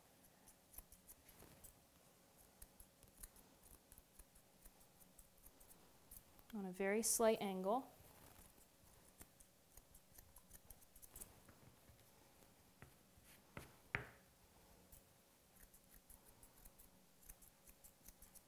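Scissors snip softly and quickly.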